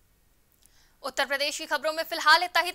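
A young woman reads out news clearly through a microphone.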